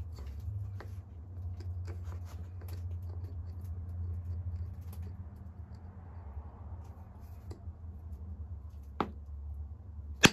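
A stone scrapes against a bone tool.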